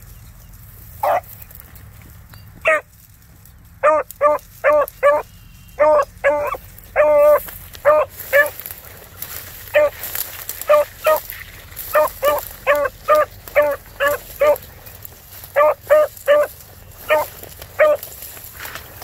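A dog bays in short, repeated bursts nearby.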